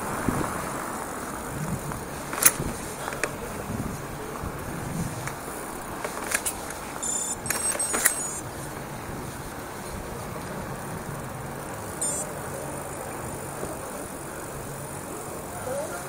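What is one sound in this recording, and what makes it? A bicycle rolls over paving stones with a low rumble.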